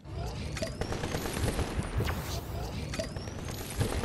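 A character gulps down a drink.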